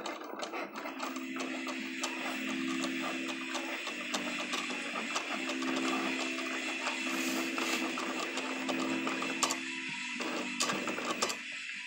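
A motor hums steadily with a buzzing tone.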